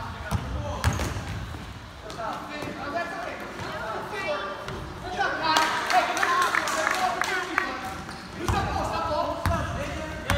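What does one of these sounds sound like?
Young men shout and call out across an echoing gym.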